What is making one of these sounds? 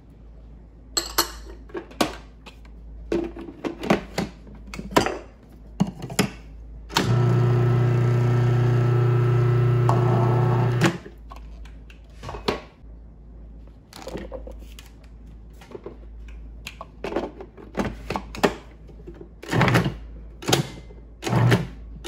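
Plastic parts clatter and click as a food processor lid is fitted.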